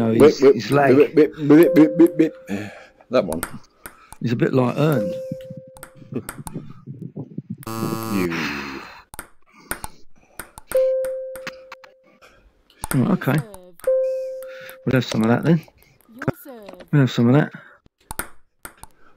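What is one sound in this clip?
A ping-pong ball clicks sharply against paddles and a table.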